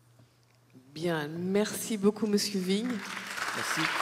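A man speaks briefly through a microphone in a large echoing hall.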